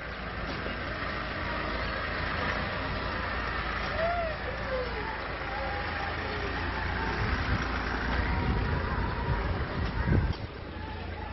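A vehicle engine idles nearby.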